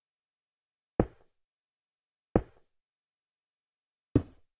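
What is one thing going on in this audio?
Stone blocks thud heavily as they are set down.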